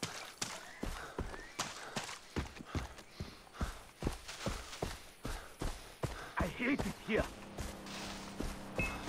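Footsteps rustle quickly through grass and leaves.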